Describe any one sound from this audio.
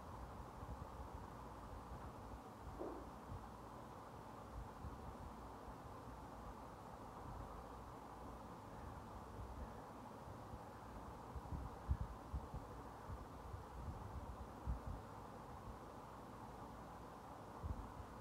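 Billiard balls clack together as a cue ball strikes them.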